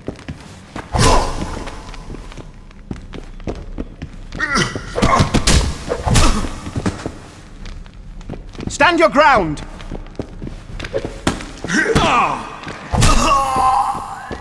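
Men grunt and cry out while fighting.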